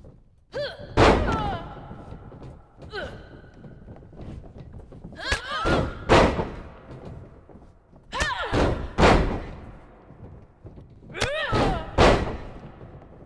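Bodies slam onto a wrestling ring mat with heavy thuds.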